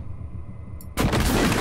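A heavy weapon fires with a thud.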